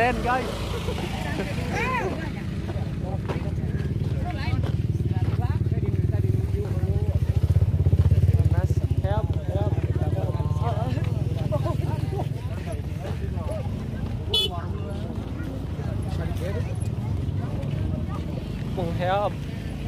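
Men talk nearby outdoors.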